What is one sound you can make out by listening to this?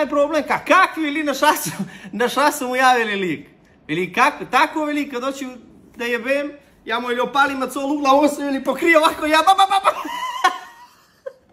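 A man talks with animation close by, laughing now and then.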